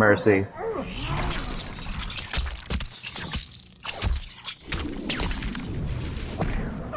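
Metal chains rattle and whip through the air.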